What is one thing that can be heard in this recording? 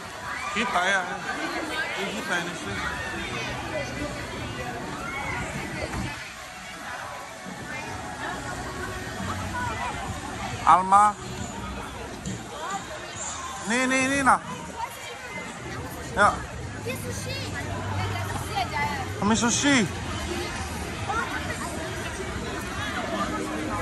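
A crowd of people chatters all around, outdoors.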